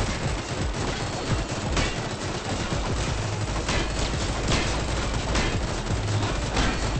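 Gunfire and blasts pop rapidly in a game.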